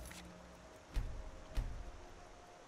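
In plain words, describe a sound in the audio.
A game menu opens with a soft thud.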